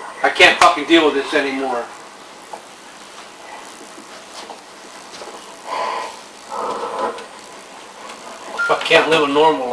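An elderly man talks nearby.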